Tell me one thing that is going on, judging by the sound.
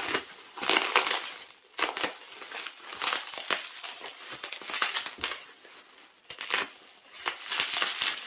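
Plastic bubble wrap crinkles and rustles under handling.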